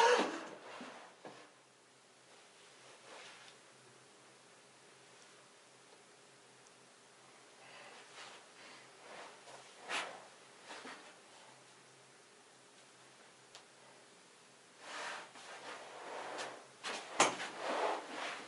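A young man speaks and laughs softly, close by.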